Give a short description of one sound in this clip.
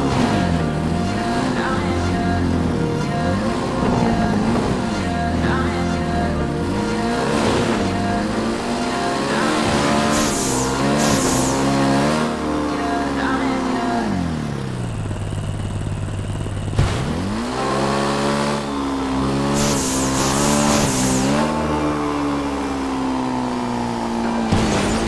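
A motorbike engine revs up and down.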